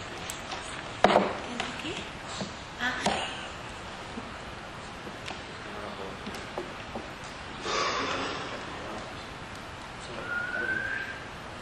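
Several adults talk quietly at a distance in a small room.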